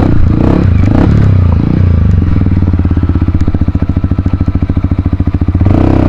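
Water splashes under tyres.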